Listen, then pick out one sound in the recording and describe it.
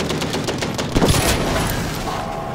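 A shell explodes with a loud blast.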